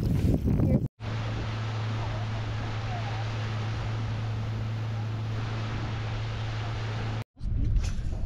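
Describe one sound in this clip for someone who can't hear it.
Water churns and splashes behind a boat.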